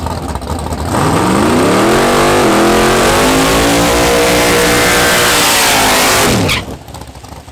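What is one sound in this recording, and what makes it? Tyres screech as they spin on pavement.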